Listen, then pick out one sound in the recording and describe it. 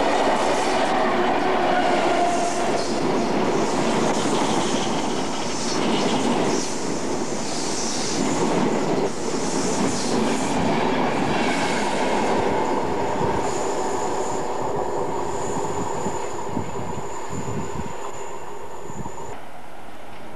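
A train rushes past loudly, wheels clattering on the rails.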